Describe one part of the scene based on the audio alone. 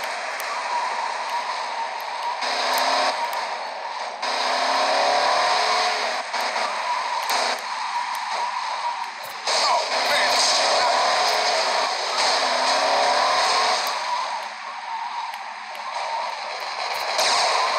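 Car tyres screech on the road.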